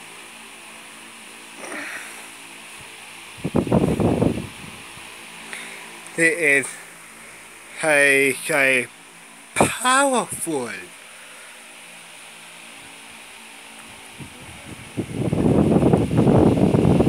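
An electric fan hums and whirs steadily.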